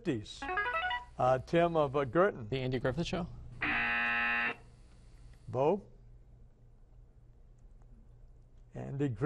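A young man speaks quickly into a microphone.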